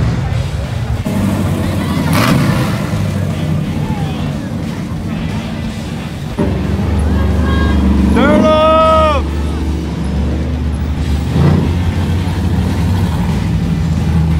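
Classic car engines rumble as the cars cruise slowly past.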